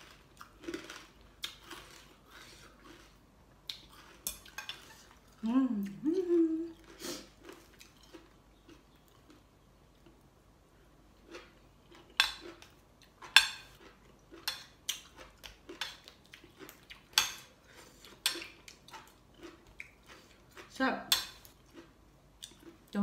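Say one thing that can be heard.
Metal forks and spoons clink against a plate.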